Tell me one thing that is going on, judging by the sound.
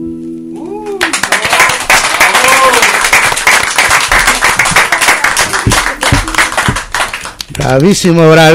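A group of people applaud and cheer loudly.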